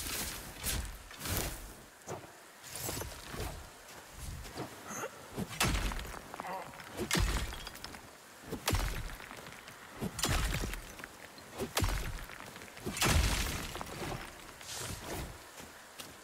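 A pickaxe strikes rock with sharp, repeated clinks.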